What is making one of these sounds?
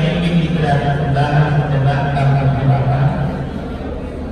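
A man hums a low, steady chant nearby.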